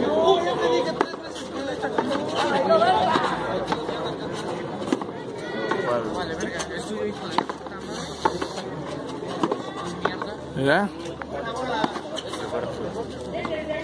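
A ball smacks against a wall and bounces on a hard court, echoing sharply.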